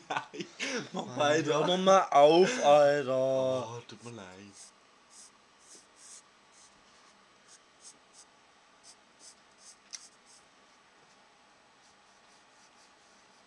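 A pencil scratches in short strokes on paper.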